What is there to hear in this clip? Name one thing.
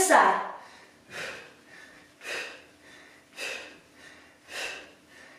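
A woman exhales sharply with each sit-up.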